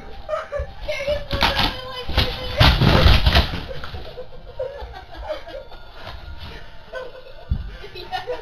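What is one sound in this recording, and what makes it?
Cardboard rustles and scrapes as it is shifted close by.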